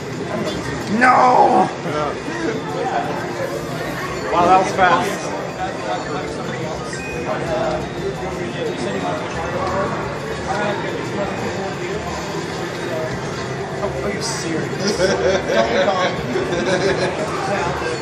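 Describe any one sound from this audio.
Racing game music and engine sounds play from a television loudspeaker.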